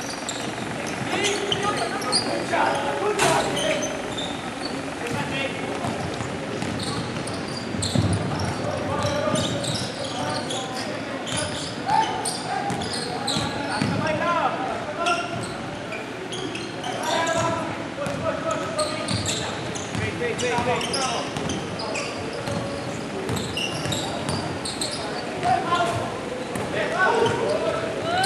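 Sneakers squeak sharply on a hardwood court in a large echoing gym.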